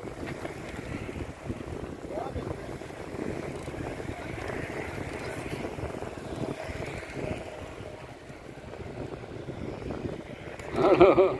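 Bicycle tyres hum on asphalt as a group of cyclists rides past.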